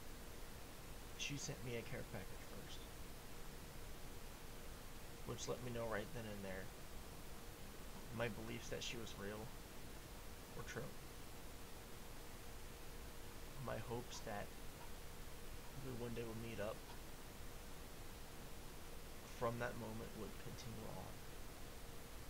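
A young man speaks calmly in short bursts close to a microphone.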